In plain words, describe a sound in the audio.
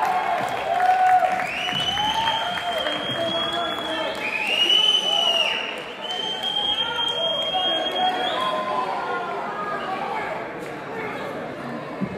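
A live band plays amplified guitars and keyboards.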